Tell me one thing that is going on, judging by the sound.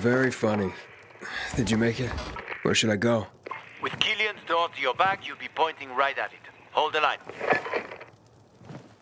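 Men talk calmly through a crackly walkie-talkie.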